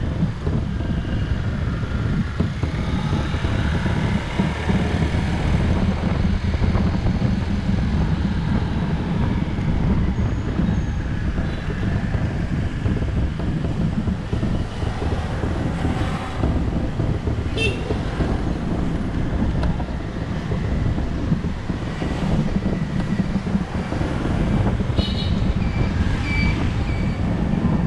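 A motorbike engine hums steadily up close as it rides along.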